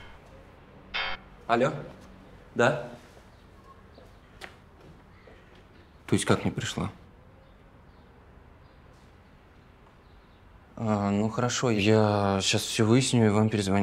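A young man talks on a phone nearby, with pauses.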